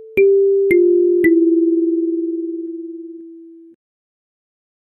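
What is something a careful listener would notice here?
Three kalimba notes are plucked one after another and ring out, slowly fading.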